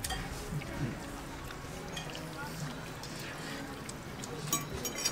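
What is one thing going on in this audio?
Forks clink against glass bowls.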